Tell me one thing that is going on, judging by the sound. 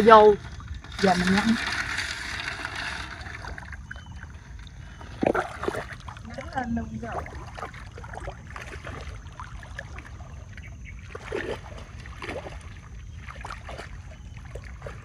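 Water splashes and sloshes as a woman wades through shallow water.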